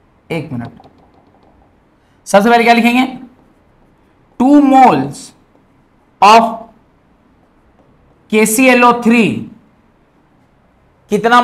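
A man speaks loudly and with emphasis in short bursts, close to a microphone.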